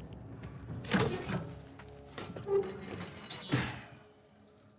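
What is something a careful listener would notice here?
A metal safe door clanks and swings open.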